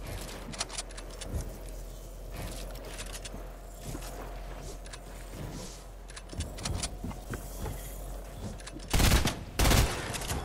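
Game building pieces snap into place with quick clicks.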